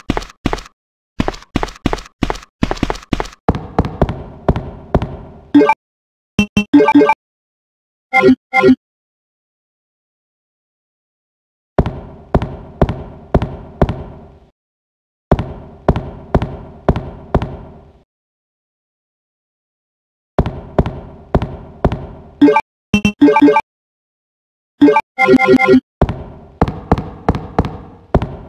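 Footsteps knock on a wooden floor with a slight echo.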